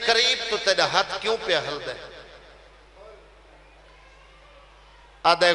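A man chants loudly with emotion through a microphone, his voice echoing.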